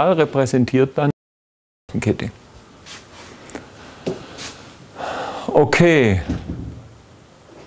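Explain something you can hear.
A middle-aged man lectures calmly through a clip-on microphone.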